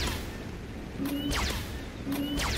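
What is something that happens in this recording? A car explodes with a fiery burst.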